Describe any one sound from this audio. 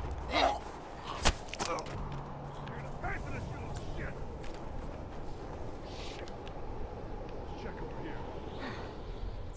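Wind howls steadily in a blizzard.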